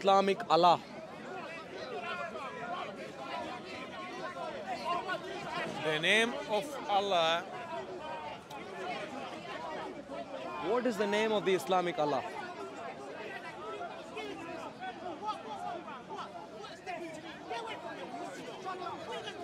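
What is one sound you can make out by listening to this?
A man speaks into a handheld microphone, asking questions.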